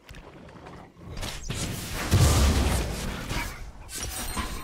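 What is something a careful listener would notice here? Magic spells whoosh and crackle in a fight between game characters.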